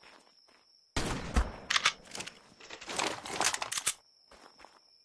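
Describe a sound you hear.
Shotgun blasts boom loudly, one after another.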